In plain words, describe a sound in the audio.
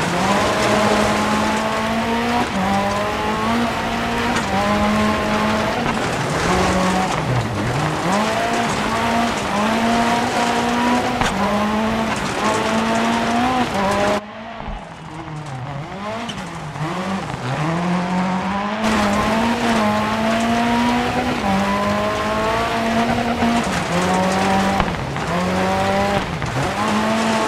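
A rally car engine roars and revs hard, rising and dropping with quick gear changes.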